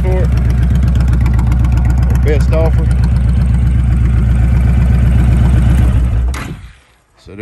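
A motorcycle engine idles with a deep, steady throb, then cuts off.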